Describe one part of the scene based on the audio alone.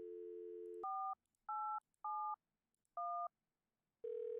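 Phone keys beep as a number is dialed.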